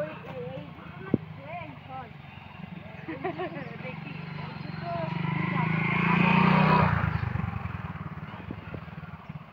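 A motorcycle engine approaches, passes close by and fades away.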